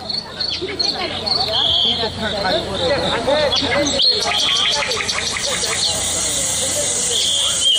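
A woman sings through a microphone over loudspeakers.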